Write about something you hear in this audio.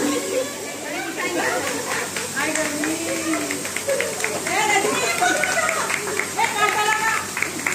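Women chatter and laugh together close by.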